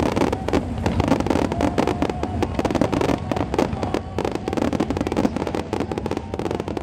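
Fireworks boom and crackle rapidly overhead, outdoors.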